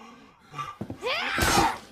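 A young girl screams fiercely close by.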